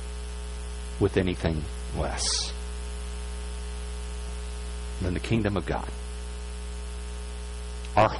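A man speaks in short phrases through a microphone in a large echoing hall.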